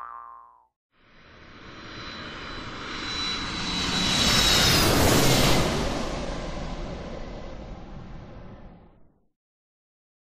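A jet engine roars loudly, swelling and then fading away.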